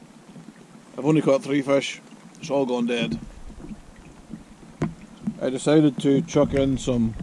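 A man talks casually, close to the microphone.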